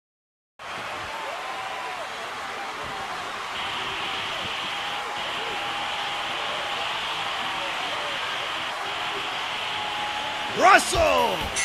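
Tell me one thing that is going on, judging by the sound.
A large crowd cheers and murmurs steadily in an arena.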